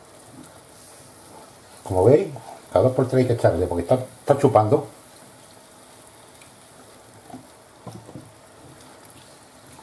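A wooden spoon scrapes and stirs in a frying pan.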